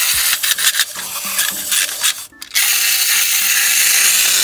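Wind-up plastic teeth click and clatter as hands handle them.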